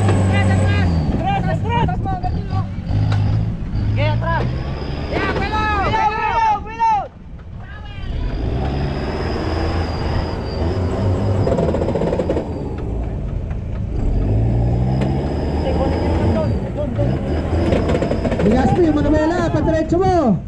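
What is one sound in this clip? Men shout and cheer with excitement outdoors.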